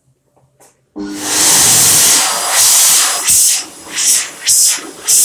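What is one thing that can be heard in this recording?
A hand dryer blows with a loud roar.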